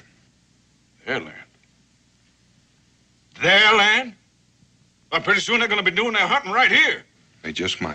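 An older man speaks gruffly and firmly, close by.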